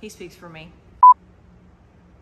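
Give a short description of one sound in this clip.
A test tone beeps briefly.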